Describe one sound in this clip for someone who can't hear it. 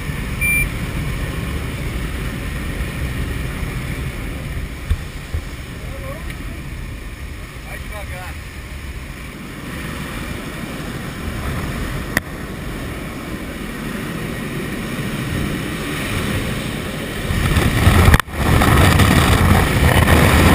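An aircraft engine drones steadily from inside a cabin.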